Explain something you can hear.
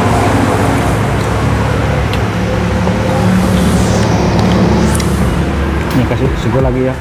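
Hands crack and tear apart seafood shells.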